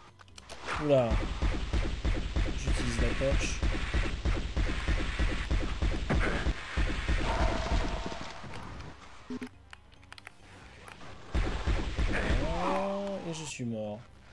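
A magic weapon fires rapid, crackling blasts.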